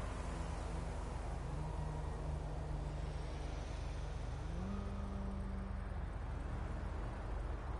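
A car engine passes close by.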